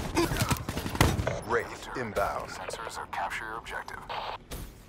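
A rifle fires short rapid bursts.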